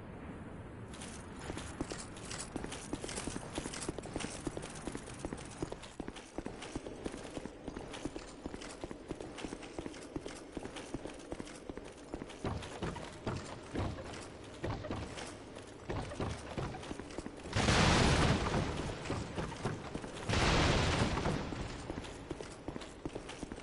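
Armored footsteps clatter quickly on stone.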